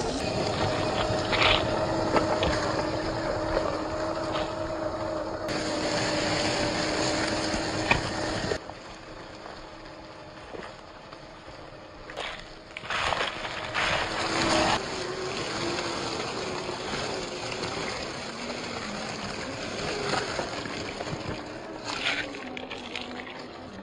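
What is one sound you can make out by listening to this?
Dry leaves crunch and rustle under small tyres.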